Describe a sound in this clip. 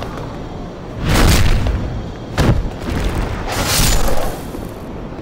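A sword swings through the air with a whoosh.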